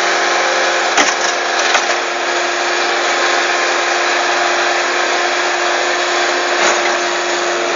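A skid steer loader's bucket thuds against the ground.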